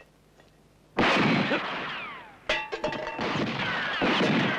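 A pistol fires several loud shots outdoors.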